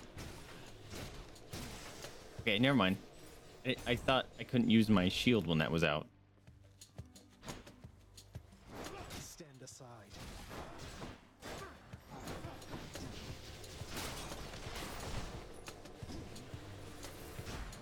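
Weapons swing and strike with sharp whooshes and bursts during a fight.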